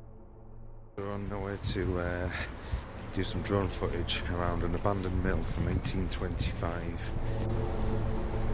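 A man speaks close to the microphone in a relaxed, chatty way.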